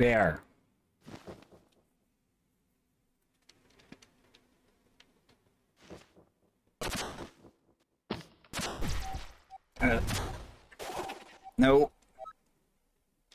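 Sharp video game fighting effects of blows and blasts burst out in quick bursts.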